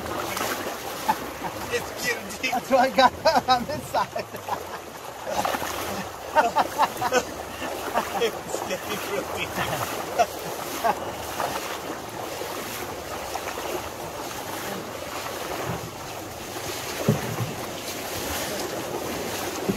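Water rushes and splashes around a man's legs.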